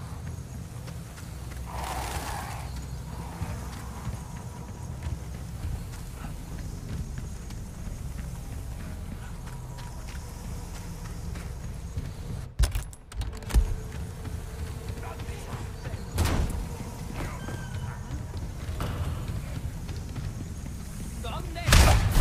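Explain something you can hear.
Footsteps run steadily over wooden boards and stone.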